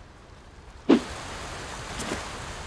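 Water sloshes around a swimmer.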